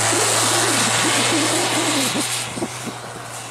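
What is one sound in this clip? A 4x4 SUV engine revs hard as it pushes through deep snow.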